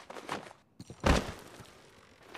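A heavy body thuds down onto a bed.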